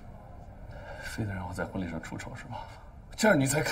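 A young woman speaks softly and teasingly nearby.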